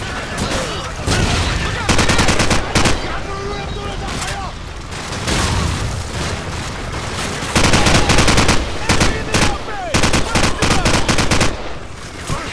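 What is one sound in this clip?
Rifles fire in rapid bursts, loud and close.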